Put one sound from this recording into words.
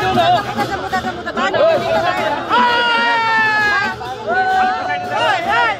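A crowd of men and women talk and shout excitedly close by.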